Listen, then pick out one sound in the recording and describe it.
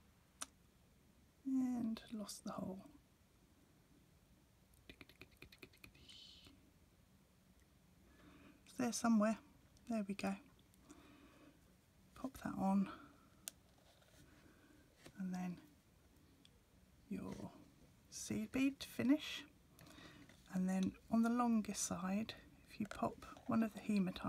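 Small beads click softly as they slide onto a thin wire.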